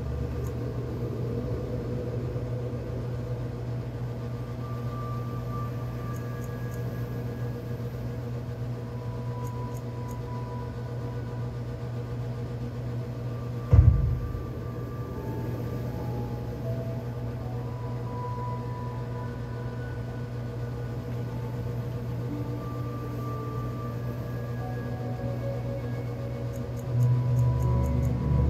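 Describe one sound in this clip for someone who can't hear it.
Soft instrumental music plays from a television speaker.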